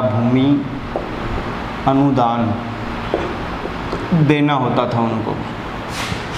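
A young man speaks calmly and clearly, close by, as if teaching.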